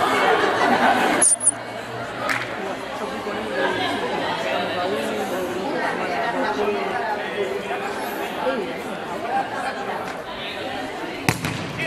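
Several young women talk and call out to each other outdoors.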